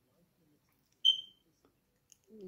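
A small child squeals with delight.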